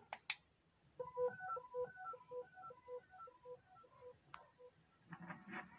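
A television plays a short, bright electronic tune through its loudspeaker.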